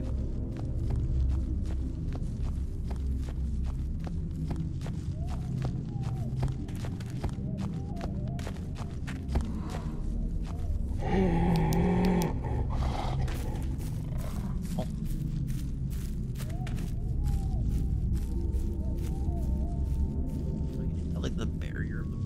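Footsteps crunch through dry leaves and twigs on the forest floor.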